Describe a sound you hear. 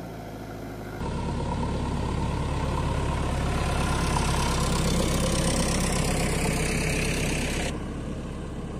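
Large tyres crunch over dry ground.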